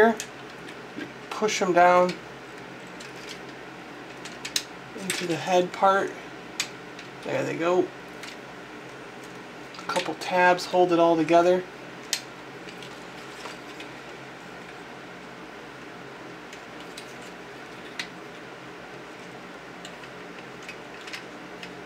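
Plastic toy parts click and snap as they are handled and fitted together.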